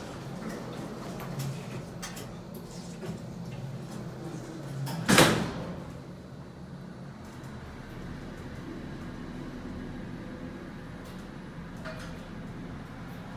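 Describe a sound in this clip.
An elevator hums low and steadily.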